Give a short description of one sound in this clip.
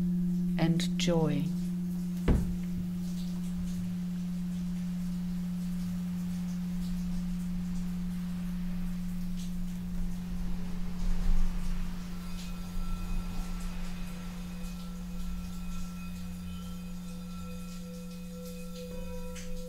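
Crystal singing bowls hum with a steady, sustained ringing tone.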